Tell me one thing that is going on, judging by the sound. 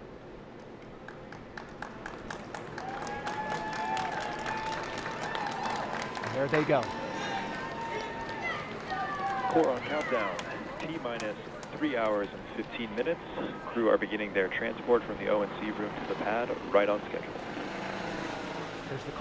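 A crowd cheers and whoops outdoors.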